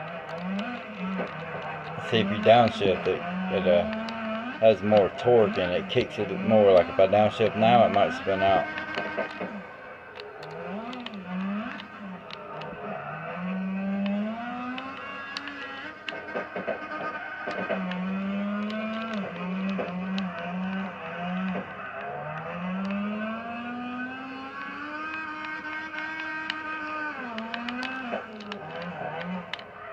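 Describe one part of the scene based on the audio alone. A game car engine revs and whines, rising and falling as it drifts.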